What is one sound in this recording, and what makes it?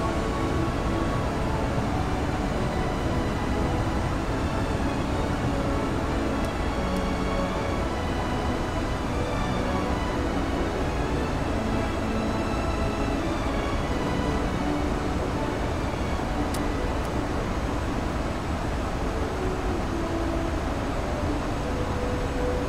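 Jet engines roar steadily and low.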